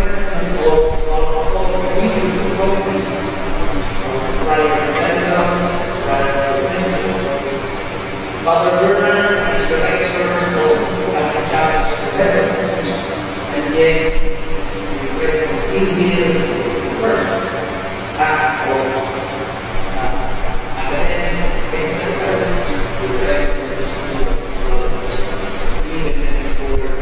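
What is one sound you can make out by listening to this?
A man sings slowly through a microphone in a large echoing hall.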